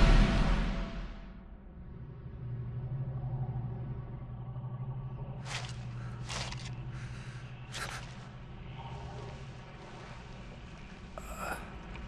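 A man breathes heavily close by.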